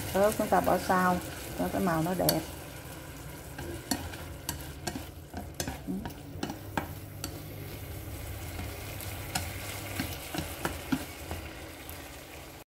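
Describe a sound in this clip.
Chopsticks tap and scrape against a frying pan.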